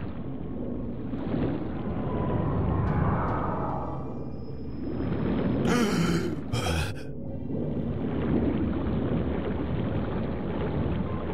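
Deep water rumbles and churns steadily all around.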